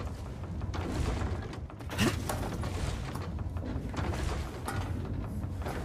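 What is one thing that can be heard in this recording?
Boots clank on metal ladder rungs in a slow rhythm.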